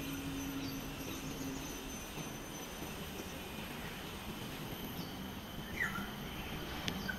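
Wind blows softly outdoors, rustling tree leaves.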